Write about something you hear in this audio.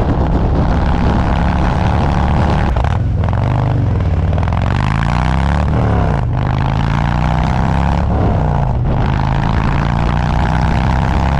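A motorcycle engine rumbles loudly close by, revving up and dropping as it shifts gears.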